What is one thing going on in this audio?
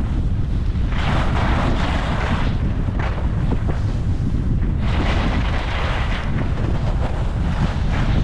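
Wind rushes loudly past, low and steady.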